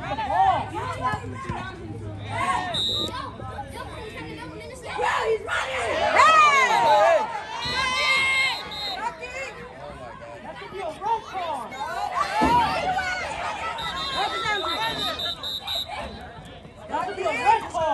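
A crowd of spectators talks and cheers loudly outdoors.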